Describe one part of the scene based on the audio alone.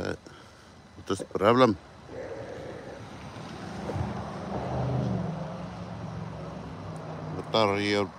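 A car drives slowly past nearby.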